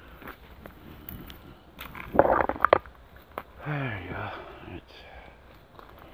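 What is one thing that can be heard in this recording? Footsteps crunch on dry debris and twigs.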